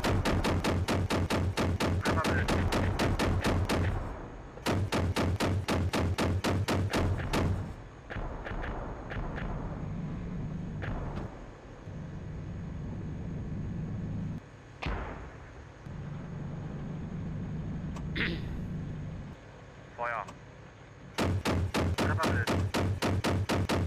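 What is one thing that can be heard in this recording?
A heavy gun fires in long, rapid bursts.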